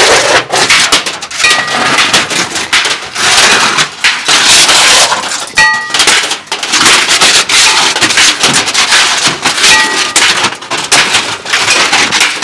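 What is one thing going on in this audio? A metal sign clatters and scrapes on pavement.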